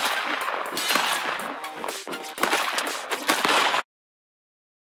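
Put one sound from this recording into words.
Electronic game sound effects zap and crackle.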